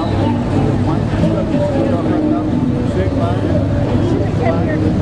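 An old truck engine rumbles low as the truck rolls slowly past.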